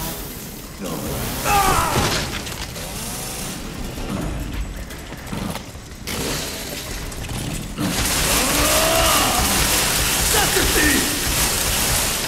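A chainsaw engine roars and revs.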